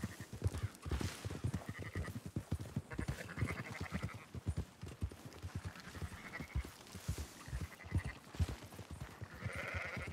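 Sheep bleat nearby.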